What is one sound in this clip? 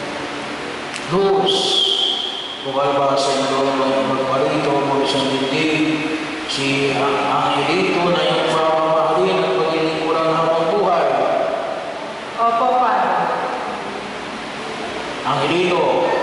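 A woman sings into a microphone, heard through a loudspeaker.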